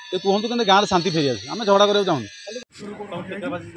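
A man speaks up close with agitation.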